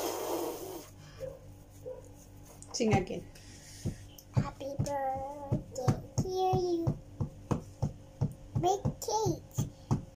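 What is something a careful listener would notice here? A little girl talks and sings in a high voice close by.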